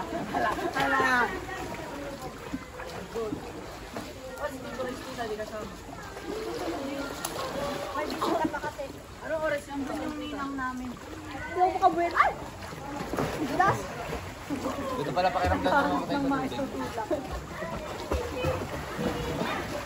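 Water splashes and laps in a pool.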